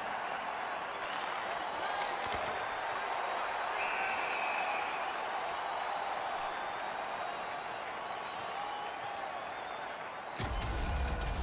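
A large arena crowd murmurs and cheers steadily.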